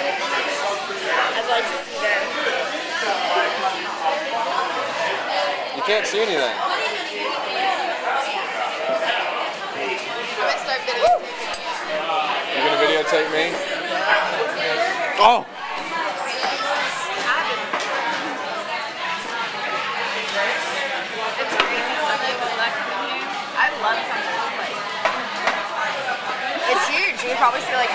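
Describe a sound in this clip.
Many people chatter and laugh all around in a busy, echoing room.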